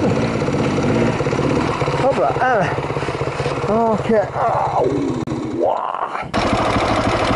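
Dirt bike engines idle and rev sharply nearby.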